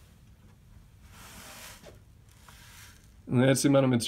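Small plastic beads slide and rustle inside a tilted plastic bucket.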